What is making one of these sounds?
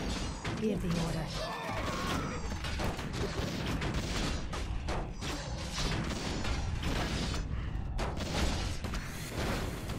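Weapons clash in a busy fantasy battle.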